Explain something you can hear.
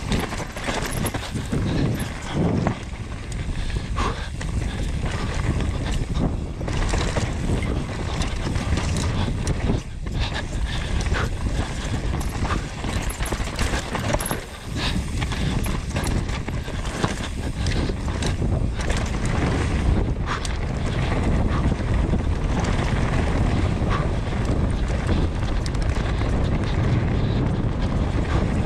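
A bicycle frame rattles and clatters over bumps.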